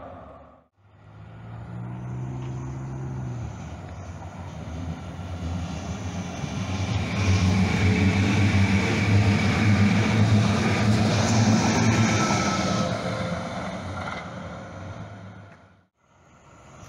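A light rail train rumbles past close by, loud and then fading.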